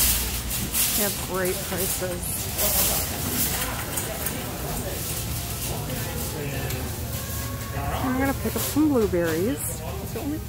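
A woman talks nearby in a busy, echoing room.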